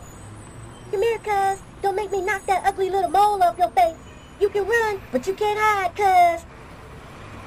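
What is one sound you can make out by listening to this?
A woman speaks sharply.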